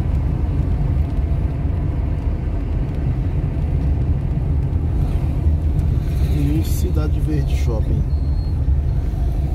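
A car engine rumbles steadily as the car drives along a road.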